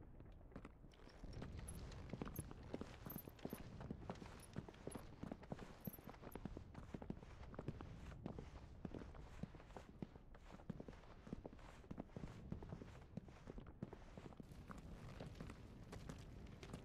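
Fire crackles and pops close by.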